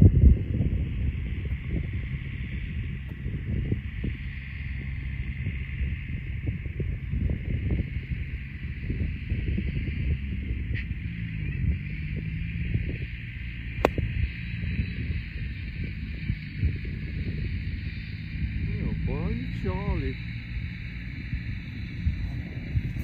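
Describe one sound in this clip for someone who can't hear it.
Wind blusters steadily across the microphone outdoors.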